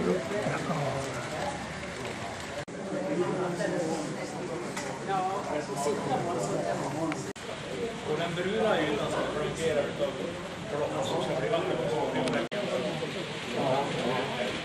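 A crowd of adults chatter in a large echoing hall.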